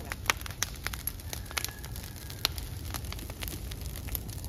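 A large bonfire of dry leaves and bamboo crackles and pops.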